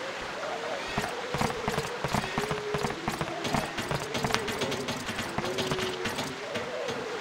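Footsteps run quickly across wooden boards.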